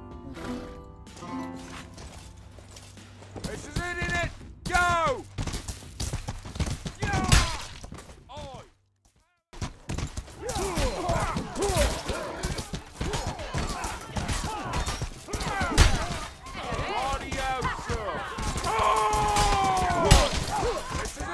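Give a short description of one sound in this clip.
A horse gallops with quick, thudding hoofbeats on dirt.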